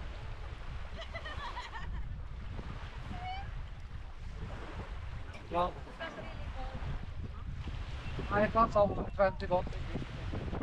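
A young child calls out nearby.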